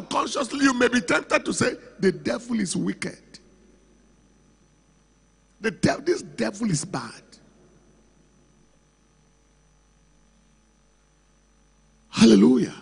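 A man preaches with animation through a microphone in a large hall.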